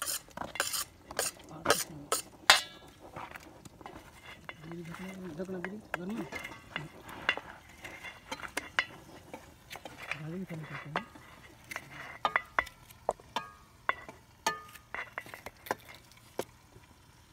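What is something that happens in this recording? A knife clicks and taps as tomatoes are cut by hand.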